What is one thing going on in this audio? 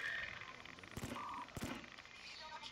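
Gunshots crack sharply twice.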